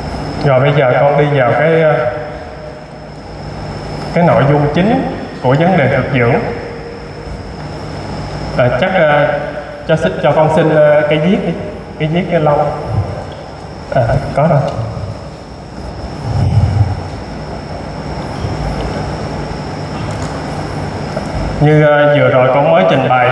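A man speaks with animation through a headset microphone.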